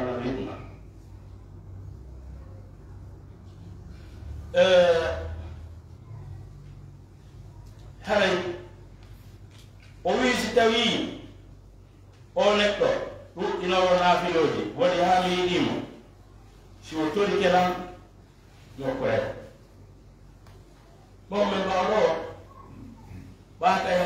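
An elderly man speaks into a microphone in bursts, with pauses, in an echoing room.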